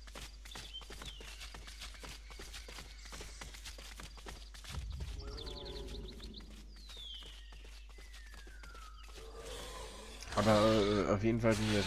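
A small dinosaur lets out shrill chirping calls.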